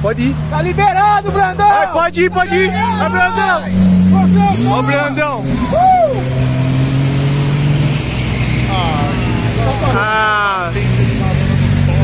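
A crowd cheers and whoops outdoors.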